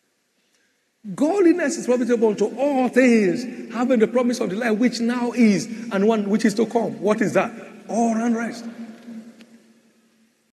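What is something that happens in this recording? A man preaches with animation through a microphone and loudspeakers.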